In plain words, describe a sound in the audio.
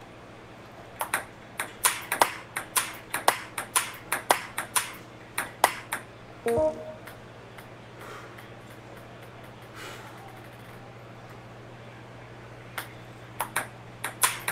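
A table tennis ball clicks sharply against paddles and a table in a quick rally.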